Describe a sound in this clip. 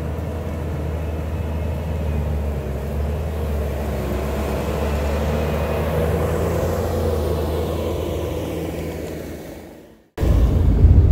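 A skid steer loader's engine rumbles steadily nearby.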